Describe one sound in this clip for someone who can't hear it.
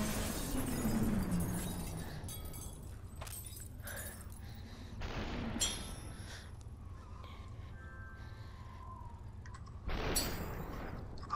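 A pistol fires sharp shots now and then.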